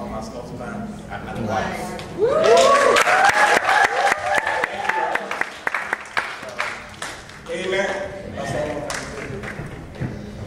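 A man speaks over a loudspeaker in a large hall.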